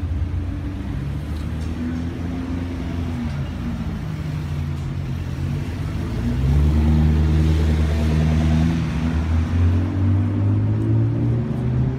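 A sports car engine revs loudly and roars as it pulls away.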